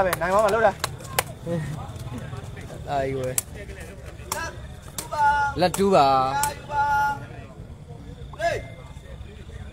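A crowd of young men shouts and cheers in bursts, outdoors.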